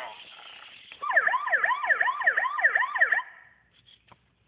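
A toy bird plays a fast electronic chirping tune.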